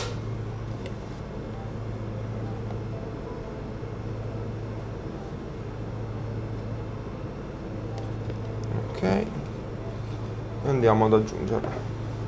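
A ventilation fan hums steadily.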